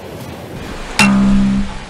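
An acoustic guitar is strummed close by.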